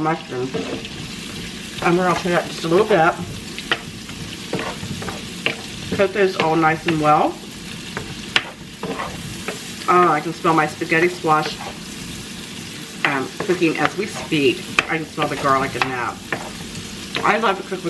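A wooden spoon scrapes and stirs in a pan.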